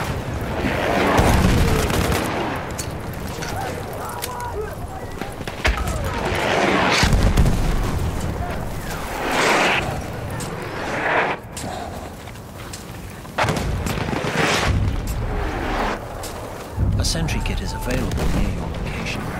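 Explosions boom and rumble nearby.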